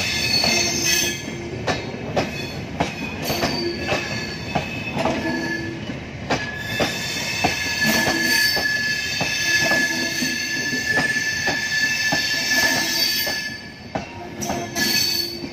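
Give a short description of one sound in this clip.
A passenger train rolls past close by, its wheels clattering rhythmically over rail joints.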